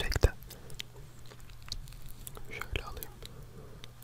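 A fork scrapes on a plate.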